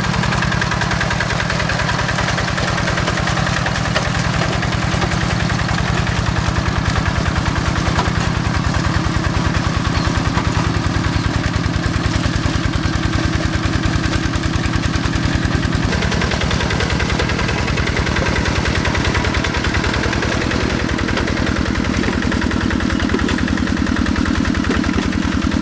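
A small diesel engine chugs steadily and rapidly.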